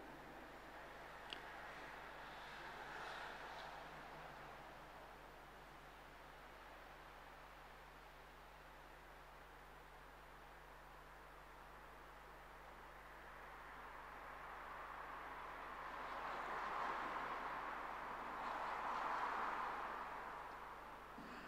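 A man chants slowly in a large echoing hall, heard through a microphone.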